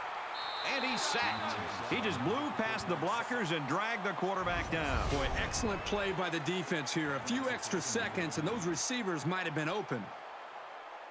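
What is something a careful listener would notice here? A large crowd cheers loudly in a stadium.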